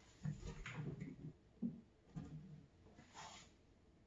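A wooden cabinet door shuts with a soft knock.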